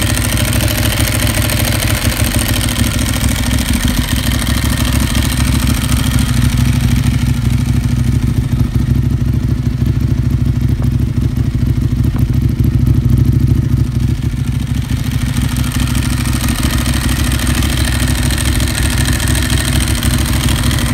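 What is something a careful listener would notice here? A motorcycle engine idles with a deep, throbbing rumble close by.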